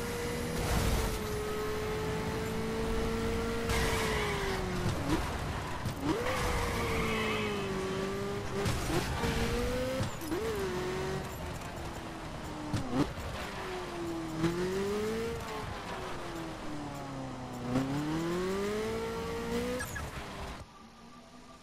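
A sports car engine roars at high revs, rising and falling as gears shift.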